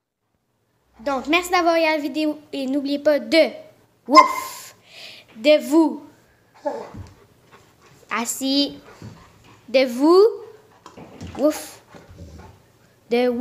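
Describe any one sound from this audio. A dog makes drawn-out, wavering howling and whining sounds close by.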